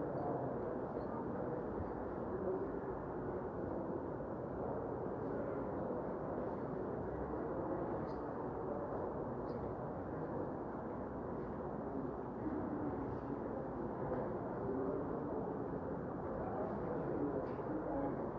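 A crowd of men murmur in conversation in a large room.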